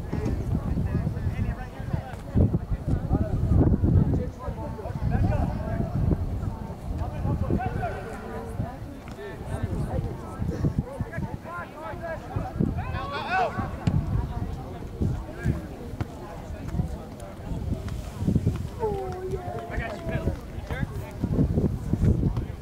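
A crowd of spectators shouts and cheers outdoors at a distance.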